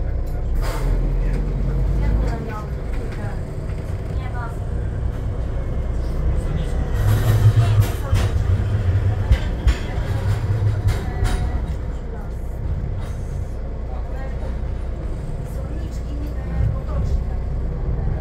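A bus engine idles with a low steady rumble.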